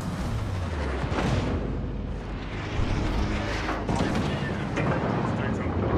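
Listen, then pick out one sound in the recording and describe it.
A ship's engines rumble low and steady.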